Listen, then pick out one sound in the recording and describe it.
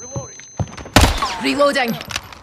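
Rapid gunshots crack at close range.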